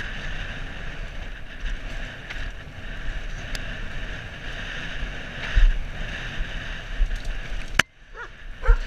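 Bicycle tyres rumble and rattle over a bumpy dirt trail.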